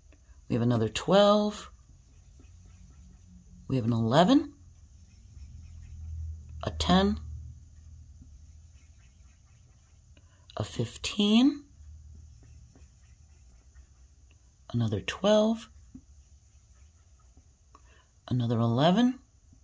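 A felt-tip marker taps and squeaks softly on paper.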